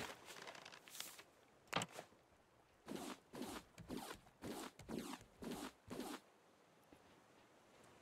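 Wooden planks knock into place in quick clicks.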